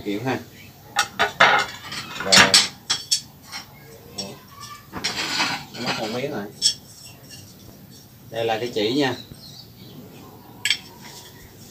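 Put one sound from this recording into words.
Tiles clack and scrape against a hard floor.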